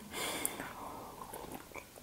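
A young woman sips a drink.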